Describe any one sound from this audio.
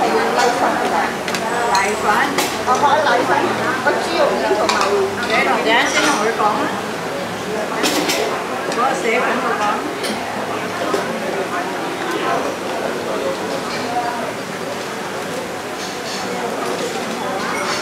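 Metal utensils and bowls clink and clatter.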